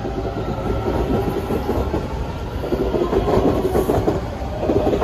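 A train's motors whine with a falling pitch as it pulls away.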